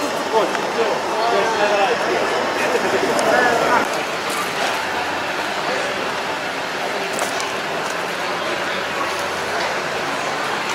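A crowd murmurs in a large echoing tent.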